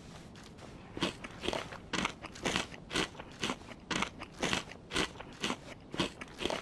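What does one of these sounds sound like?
Footsteps thud on a hard floor at a steady pace.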